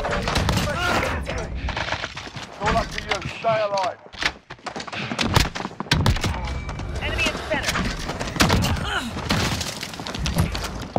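A rifle fires loud, sharp shots.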